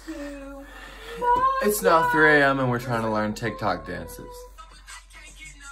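A young man sings with animation close by.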